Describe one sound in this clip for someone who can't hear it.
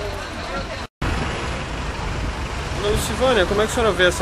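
A crowd of people chatters while pushing onto a bus.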